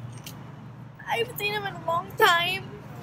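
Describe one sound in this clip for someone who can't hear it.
A young girl sobs and cries out in a wailing voice close to a microphone.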